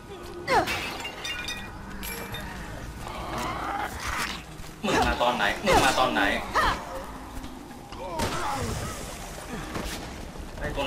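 A creature shrieks and groans.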